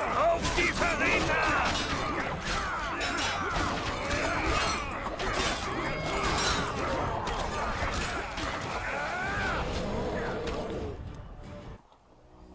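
Men shout and grunt while fighting.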